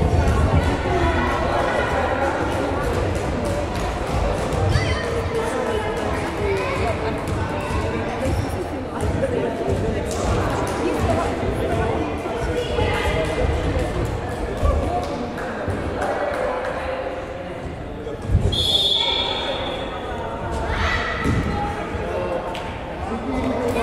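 Balls bounce and thud on a wooden floor.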